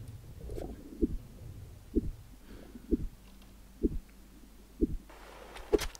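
Muffled swimming strokes thump underwater at a steady pace.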